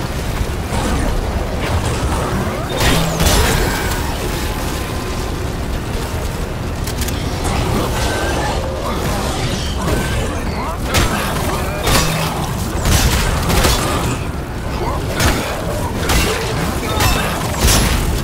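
A weapon fires in sharp bursts.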